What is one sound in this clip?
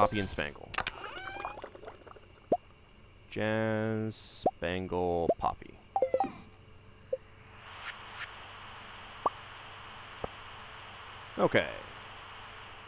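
Short game menu clicks and pops sound now and then.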